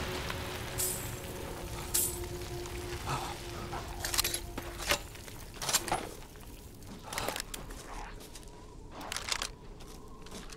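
Metal parts of a gun click and clack as it is reloaded.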